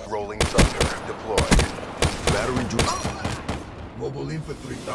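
Gunshots crack in quick bursts, then stop.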